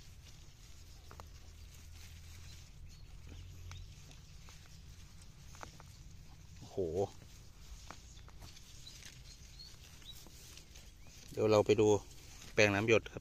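Fingers scrape and dig into dry, crumbly soil close by.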